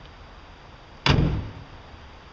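A car bonnet slams shut with a sharp bang.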